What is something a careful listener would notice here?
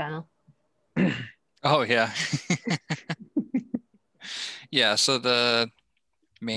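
A young man talks with animation over an online call.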